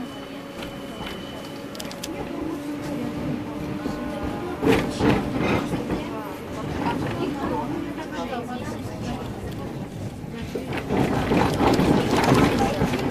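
An electric tram's traction motors whine as it rides.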